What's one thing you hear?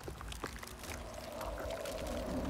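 A large creature growls close by.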